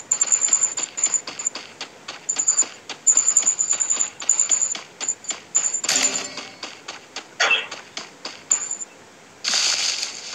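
Quick footsteps run over grass.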